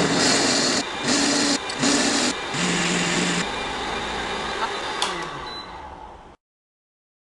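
A blender whirs loudly with a steady roar.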